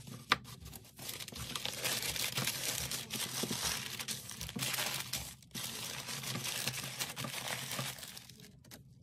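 Tissue paper rustles and crinkles as it is folded by hand.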